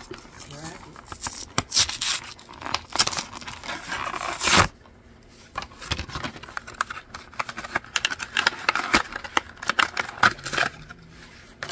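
Stiff plastic packaging crinkles and crackles as it is handled.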